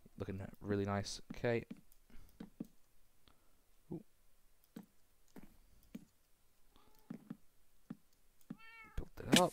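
Wooden blocks knock softly as they are placed one after another.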